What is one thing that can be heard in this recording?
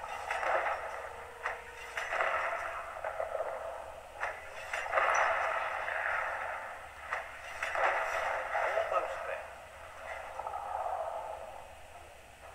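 Explosions boom and crackle one after another.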